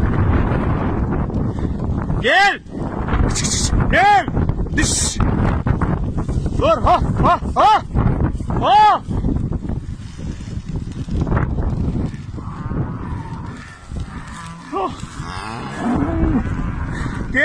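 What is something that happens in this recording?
A wildfire roars and crackles close by.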